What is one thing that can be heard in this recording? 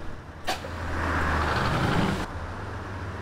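Air hisses loudly as bus doors close.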